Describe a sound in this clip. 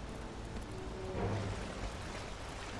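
Water splashes as a horse wades through it.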